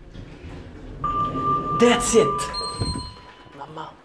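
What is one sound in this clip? An elevator chime sounds on arrival.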